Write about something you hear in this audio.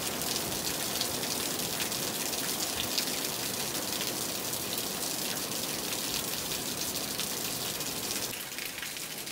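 Water pours from a roof edge and splashes onto the ground.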